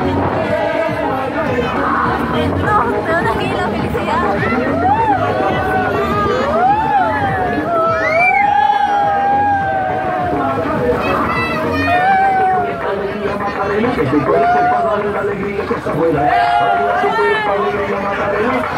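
Cheerful music plays loudly from a loudspeaker on a children's ride.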